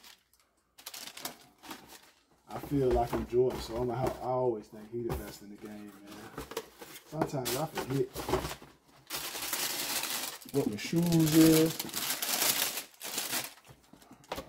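Tissue paper rustles and crinkles.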